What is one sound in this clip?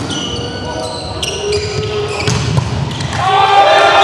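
A ball is spiked and thuds on the court.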